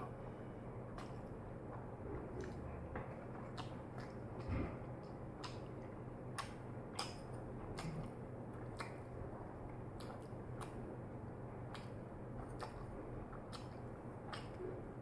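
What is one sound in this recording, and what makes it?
Wooden chopsticks click and tap together.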